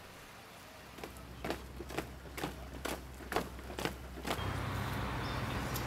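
Boots march in step on pavement.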